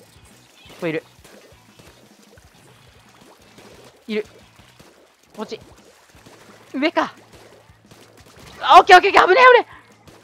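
Paint guns fire and splat wetly in rapid bursts.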